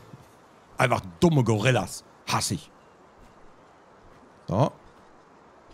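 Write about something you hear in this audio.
A man talks with animation close to a microphone, in short bursts.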